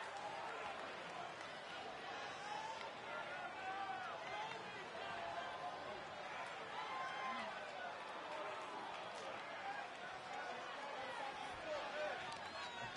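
A large crowd cheers and murmurs steadily in a big echoing hall.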